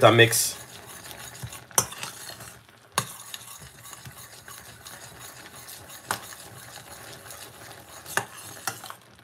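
A metal spoon clinks against a saucepan while stirring.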